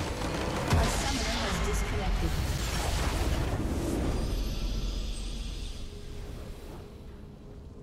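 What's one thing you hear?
A huge crystal structure shatters in a loud, roaring explosion that slowly fades.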